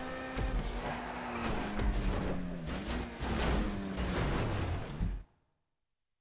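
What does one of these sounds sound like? A sports car in a driving game crashes into a wall.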